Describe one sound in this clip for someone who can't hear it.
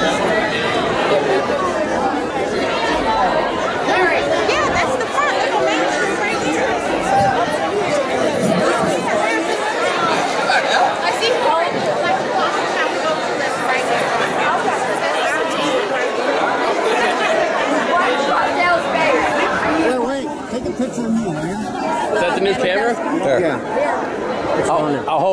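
A crowd of men and women chatter loudly all around, outdoors.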